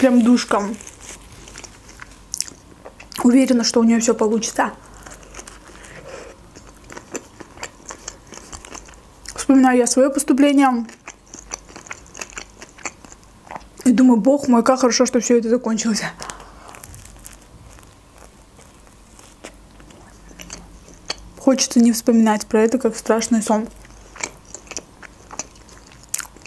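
A young woman chews crunchy bread close to a microphone.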